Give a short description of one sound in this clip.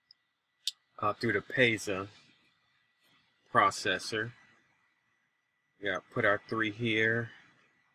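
A man talks calmly into a microphone in short phrases.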